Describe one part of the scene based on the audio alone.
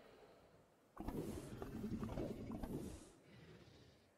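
A large creature growls with a low, rough rumble.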